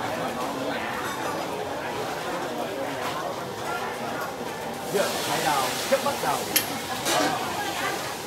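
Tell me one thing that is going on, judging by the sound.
Metal spatulas clatter against pans.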